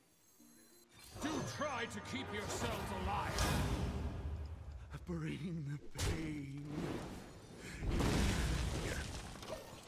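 Video game sound effects play with magical whooshes and thuds.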